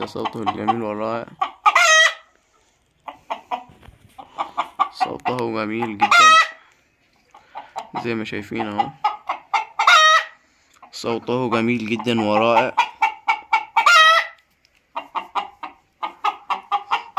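A hen clucks in quick, steady bursts.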